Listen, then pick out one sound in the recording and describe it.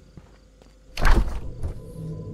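A refrigerator door is pulled open.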